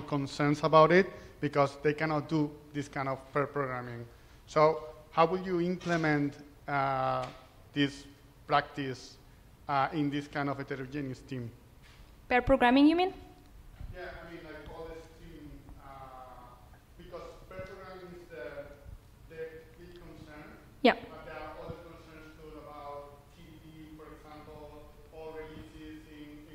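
A young man speaks steadily through a microphone in a large, echoing room.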